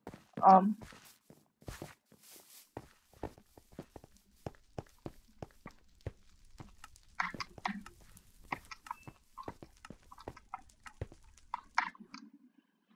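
Quick, light footsteps tap steadily.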